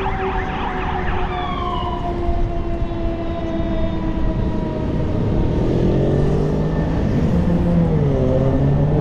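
Cars drive by on a road nearby.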